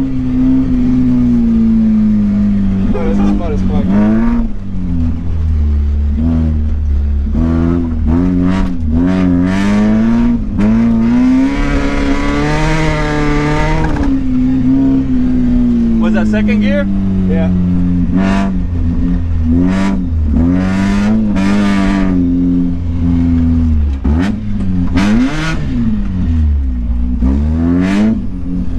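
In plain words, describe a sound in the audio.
A car engine revs hard, rising and falling in pitch as gears change.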